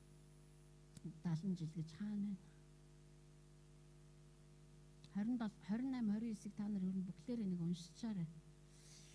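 A middle-aged woman speaks calmly in short phrases through a microphone and loudspeaker.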